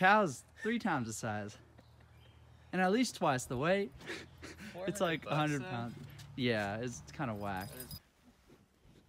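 A young man talks cheerfully and laughs nearby outdoors.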